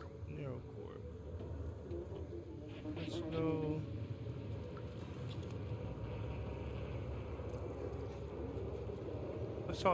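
A cat's paws pad softly over wet pavement.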